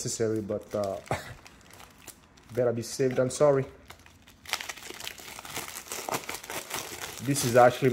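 A plastic mailer bag tears open.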